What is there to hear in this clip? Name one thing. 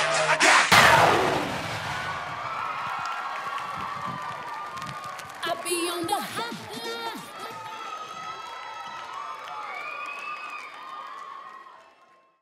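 A crowd cheers, whoops and screams loudly.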